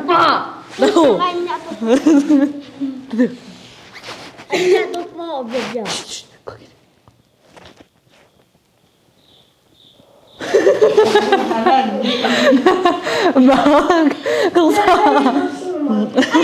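Young women talk and laugh together, close by.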